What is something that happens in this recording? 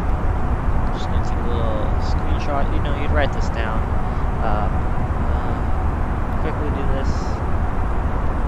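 A young man talks calmly into a microphone, close by.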